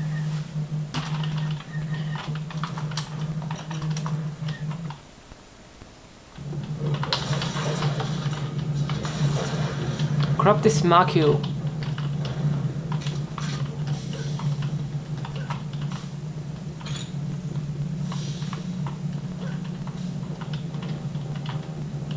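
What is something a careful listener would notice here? Keys on a computer keyboard click and clatter.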